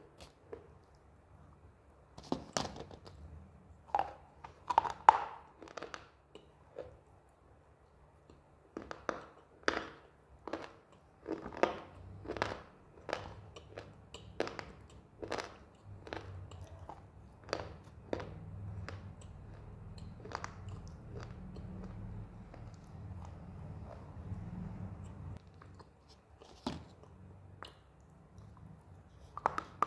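A young woman chews crunchy food close to a microphone, with sharp crackling bites.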